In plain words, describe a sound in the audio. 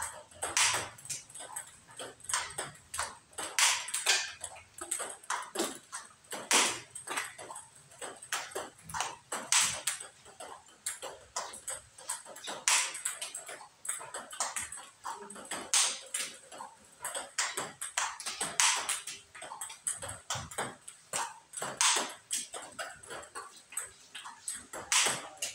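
A table tennis ball clicks rapidly back and forth off paddles and the table.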